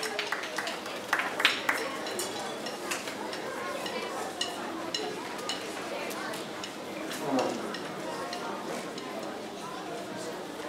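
An audience murmurs and chatters in a large echoing hall.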